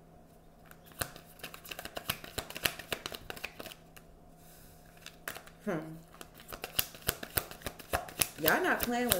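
Playing cards are shuffled with quick, soft rustling and flicking.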